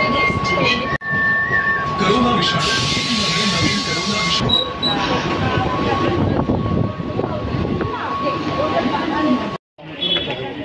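A crowd of women and children chatter nearby.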